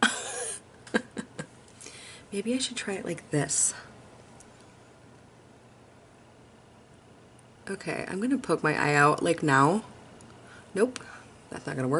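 A woman talks with animation, close to a microphone.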